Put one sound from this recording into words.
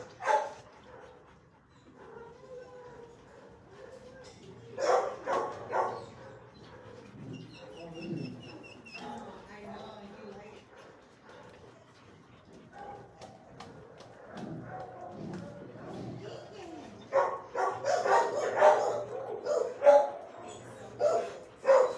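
A dog barks loudly and repeatedly nearby, with some echo.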